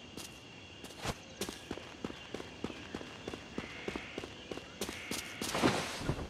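Footsteps patter quickly over soft ground.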